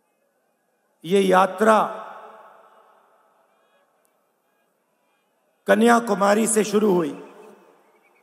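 A middle-aged man speaks loudly and forcefully into a microphone, echoing across a large open space.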